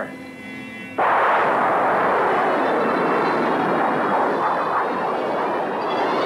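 A rocket engine roars loudly as a rocket lifts off.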